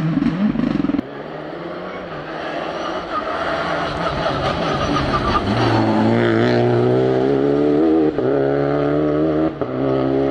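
A third rally car engine revs up and roars past.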